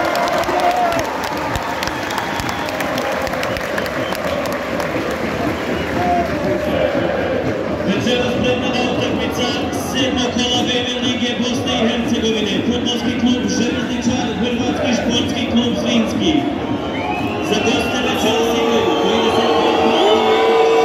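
A large stadium crowd chants and sings loudly outdoors.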